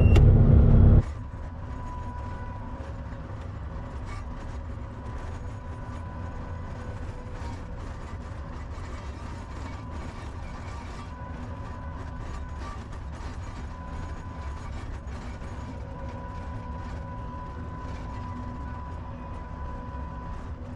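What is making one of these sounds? A skid steer loader's diesel engine rumbles steadily up close.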